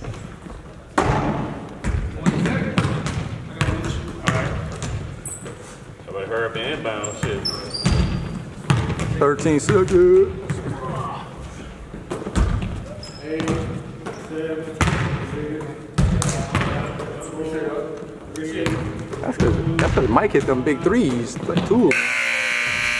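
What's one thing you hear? A basketball bounces on a wooden floor in a large echoing gym.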